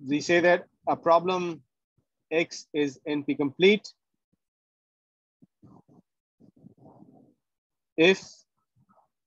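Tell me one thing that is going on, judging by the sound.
A man speaks calmly through a microphone on an online call, pausing between phrases.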